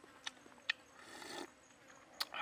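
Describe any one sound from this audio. A man sips soup from a bowl.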